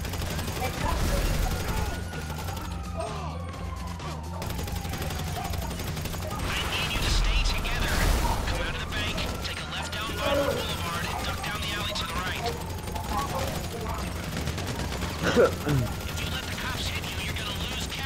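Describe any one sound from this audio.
Police sirens wail, rising and falling.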